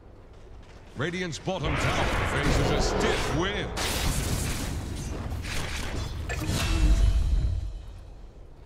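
Magic blasts and weapon clashes burst loudly during a battle.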